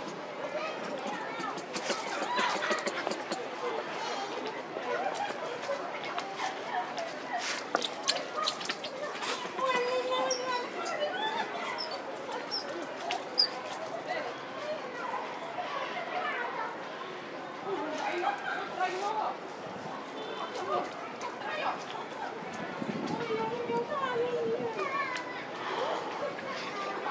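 Young monkeys squeak and chatter close by.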